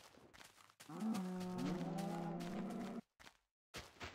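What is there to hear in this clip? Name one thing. A cow moos loudly.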